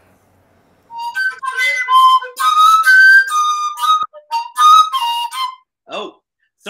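A man plays a wooden flute with a bright, wavering tone.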